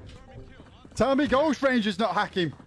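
A young man talks loudly and excitedly into a close microphone.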